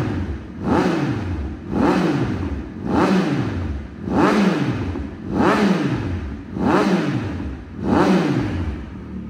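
A motorcycle engine idles and revs up sharply again and again, each rev quickly falling back.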